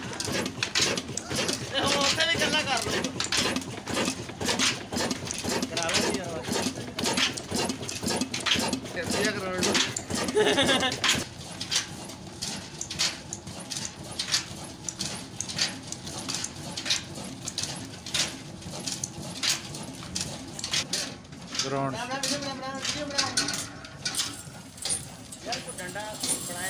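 A stationary engine chugs with a steady, rhythmic thumping.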